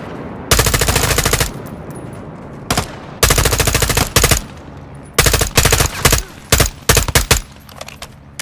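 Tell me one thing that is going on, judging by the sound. Rapid bursts of automatic gunfire ring out close by.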